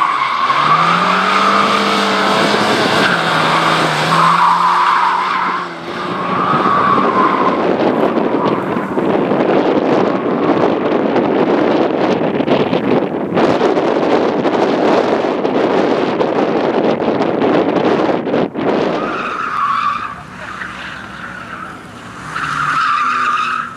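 Tyres squeal on asphalt through a tight turn.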